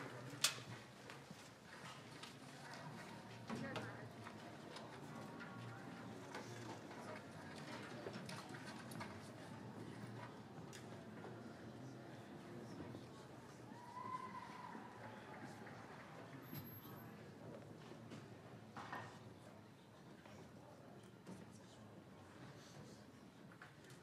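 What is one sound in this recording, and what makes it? A jazz big band plays in a large room.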